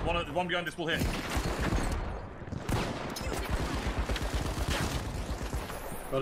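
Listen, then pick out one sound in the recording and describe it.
Gunshots fire rapidly in quick bursts.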